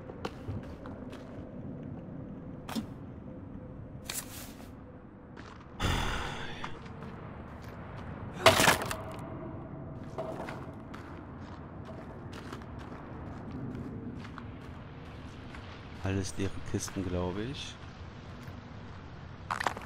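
Footsteps tread slowly over a hard floor.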